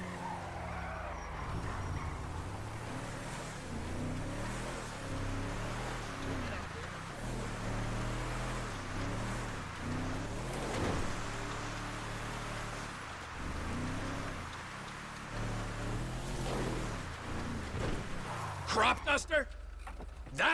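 Tyres crunch over a dirt road.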